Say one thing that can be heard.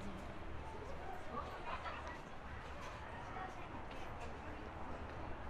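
Street noise hums steadily outdoors.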